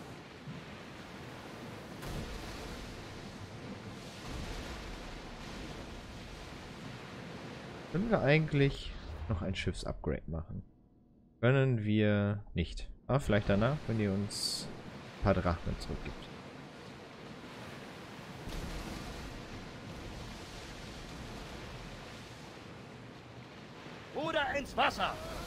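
Waves rush and splash steadily against a wooden ship's hull.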